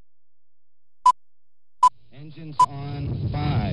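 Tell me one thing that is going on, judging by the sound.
Short electronic beeps sound a countdown.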